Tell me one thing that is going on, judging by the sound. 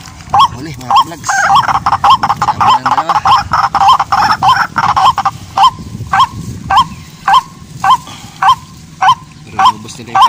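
A bird cries out in sharp, repeated distress calls.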